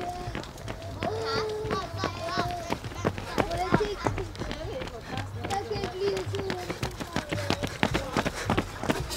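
Footsteps of runners slap on pavement.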